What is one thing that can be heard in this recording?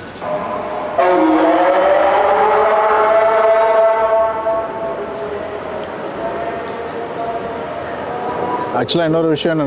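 A man chants a prayer through a loudspeaker, echoing outdoors.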